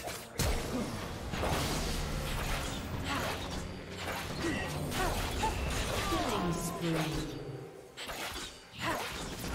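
Sword strikes and impacts clash repeatedly.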